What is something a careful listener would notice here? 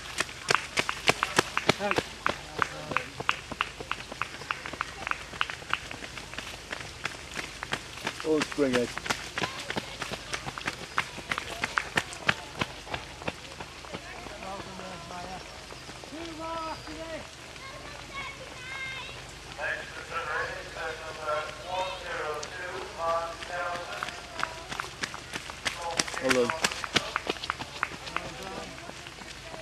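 Running shoes slap on a wet road as runners pass close by.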